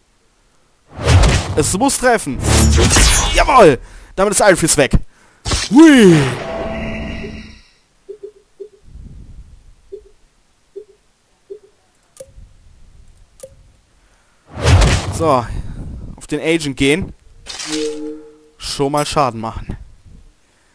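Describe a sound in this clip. Game combat effects whoosh and clash in bursts.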